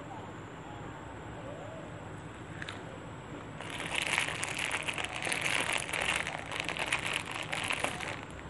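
A young woman chews food noisily close by.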